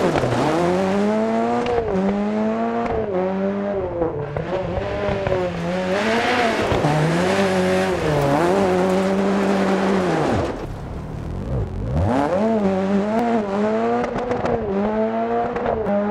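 A rally car engine revs hard and rises and falls in pitch as the car shifts gears.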